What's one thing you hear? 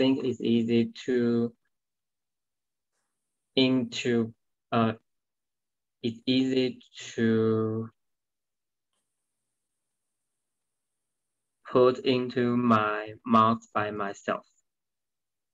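A young woman speaks calmly and clearly over an online call, in short phrases with pauses.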